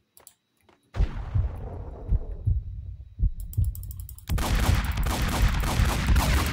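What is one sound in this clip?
Gunshots crack from a game.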